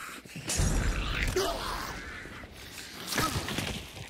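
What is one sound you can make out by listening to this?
A heavy melee blow thuds into a body.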